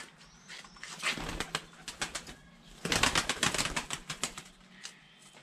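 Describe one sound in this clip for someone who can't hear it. Pigeons flap their wings as they take off.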